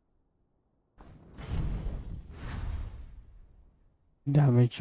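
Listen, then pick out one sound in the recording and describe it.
A magical shimmering burst swells and fades.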